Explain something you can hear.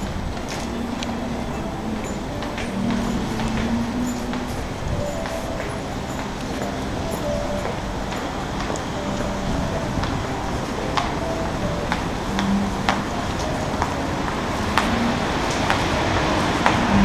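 Pedestrians walk and murmur along an outdoor street.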